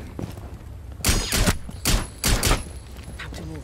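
Pistol shots fire in quick bursts.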